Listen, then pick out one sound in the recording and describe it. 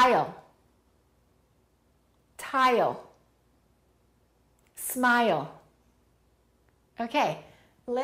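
A woman speaks single words slowly and clearly into a close microphone, with pauses between them.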